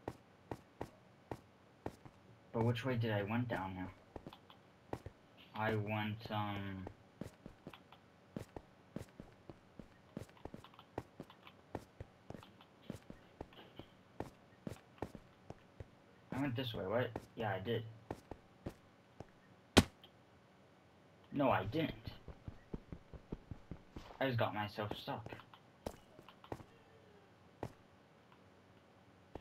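Footsteps tap on stone in quick succession.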